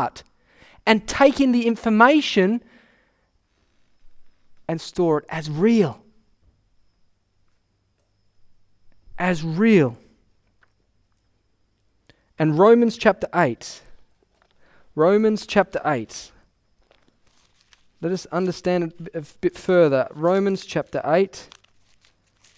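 A young man speaks with animation into a microphone, in short phrases with pauses.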